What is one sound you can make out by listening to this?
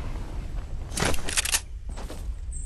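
A game character lands on grass with a thud.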